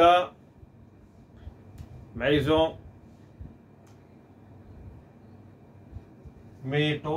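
A middle-aged man speaks calmly and clearly into a close microphone, in short phrases with pauses.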